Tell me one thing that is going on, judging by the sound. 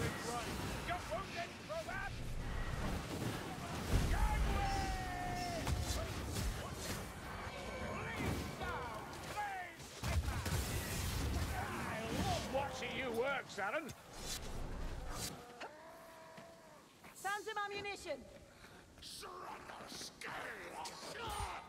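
Swords slash and strike into enemies.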